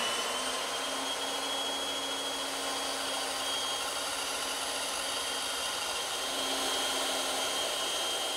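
A band saw whines steadily as it cuts through wood.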